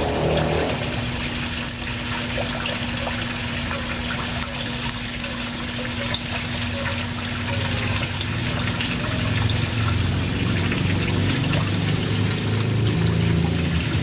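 Water bubbles and splashes at a pond's surface.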